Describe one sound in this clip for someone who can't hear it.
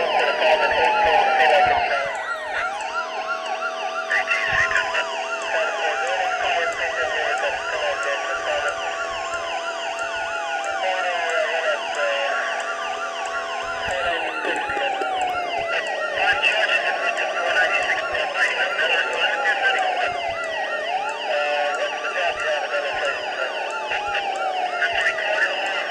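A police siren wails steadily, rising and falling over and over.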